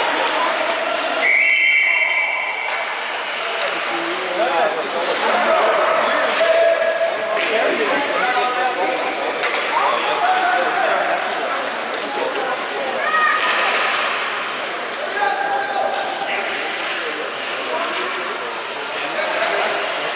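Young children shout and call out in a large echoing hall.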